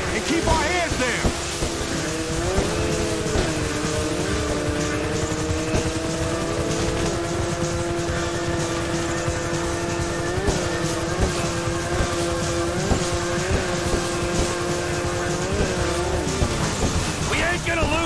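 A jet ski engine drones loudly, its pitch rising and dipping.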